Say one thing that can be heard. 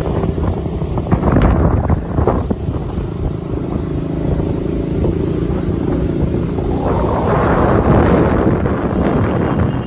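A car engine hums steadily as the vehicle drives along a road.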